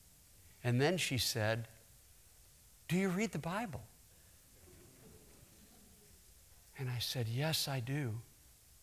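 A middle-aged man speaks with animation through a microphone in a large hall, in short bursts.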